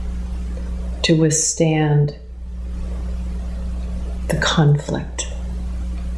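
A middle-aged woman speaks calmly and close by, in short phrases.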